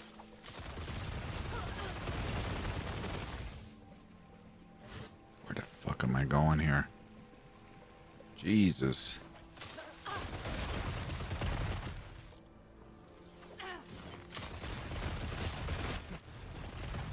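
Magic spells crackle and boom with loud bursts.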